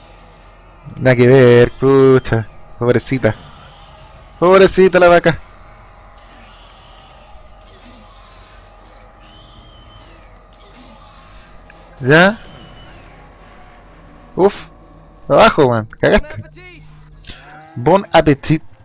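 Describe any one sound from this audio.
A man talks into a close microphone in short, animated bursts.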